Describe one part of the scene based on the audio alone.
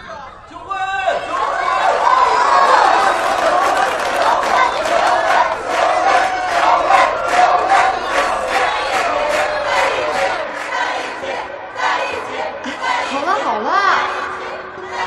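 A crowd of guests chants in unison and cheers.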